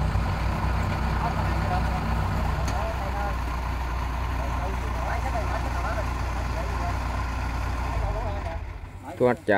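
A harvester engine runs with a steady low rumble.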